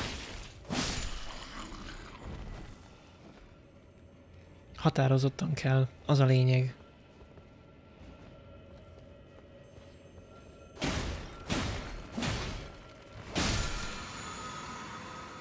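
Heavy blows and bursts of magic crash loudly, several times.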